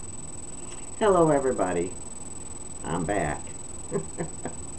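An elderly woman speaks warmly and close up, as if into a webcam microphone.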